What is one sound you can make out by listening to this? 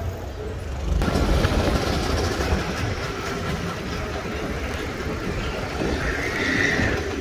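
City traffic hums in the open air.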